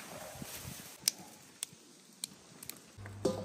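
Green beans snap in someone's hands.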